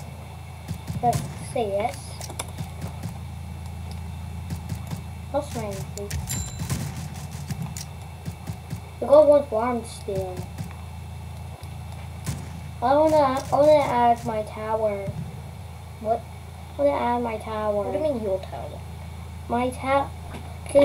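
A boy talks with animation close to a microphone.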